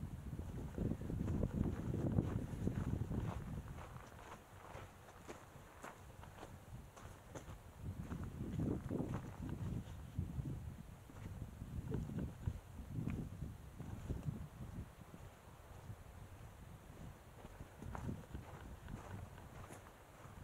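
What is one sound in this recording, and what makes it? Footsteps crunch on rocky dirt ground.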